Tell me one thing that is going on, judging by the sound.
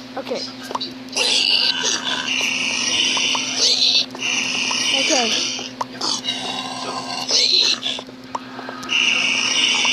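Creatures grunt and snort nearby.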